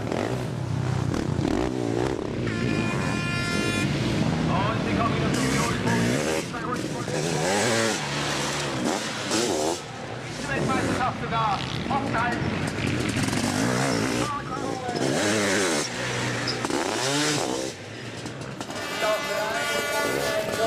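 Motorcycle engines roar and rev loudly as sidecar bikes race past.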